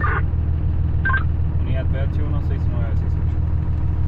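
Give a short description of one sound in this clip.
A man speaks over a radio handset.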